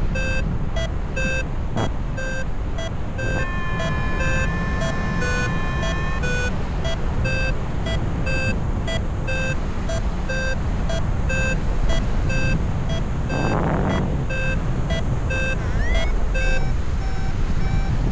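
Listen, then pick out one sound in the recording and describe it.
Wind rushes loudly past in flight outdoors.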